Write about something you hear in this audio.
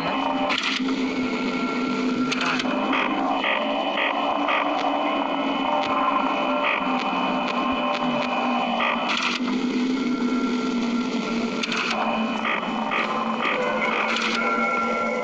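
Bursts of static hiss crackle from a monitor.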